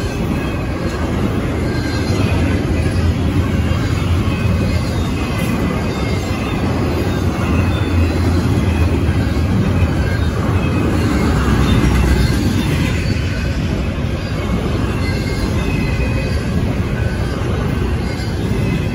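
A railroad crossing bell rings steadily.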